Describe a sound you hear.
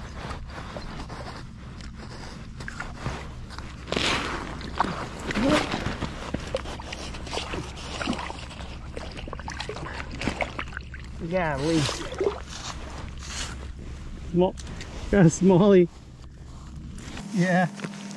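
Gloved hands splash and scrape in slushy ice water.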